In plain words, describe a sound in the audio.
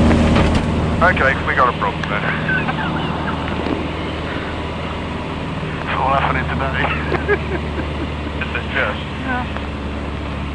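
A man talks and laughs with animation, heard through a headset microphone.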